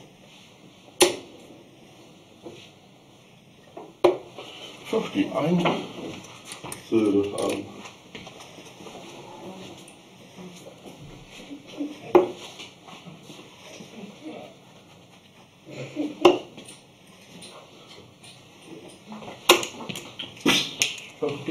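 Darts thud sharply into a dartboard, one at a time.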